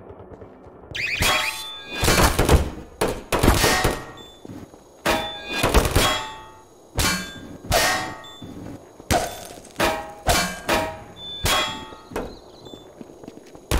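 Gunfire rings out in sharp, loud bursts.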